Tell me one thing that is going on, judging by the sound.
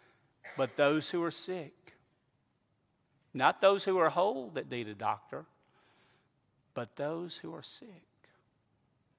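An older man speaks calmly through a microphone in a large echoing room.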